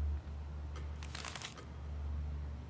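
A sheet of paper rustles as it opens.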